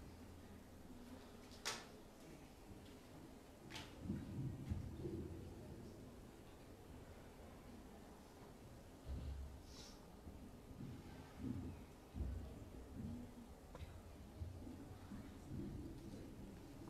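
A woman speaks through a microphone in a large, echoing hall.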